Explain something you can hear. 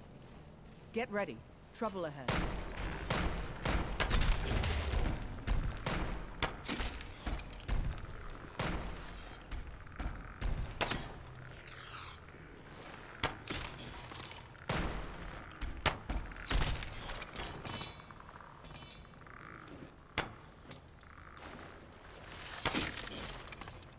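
A bowstring creaks and twangs as arrows are loosed.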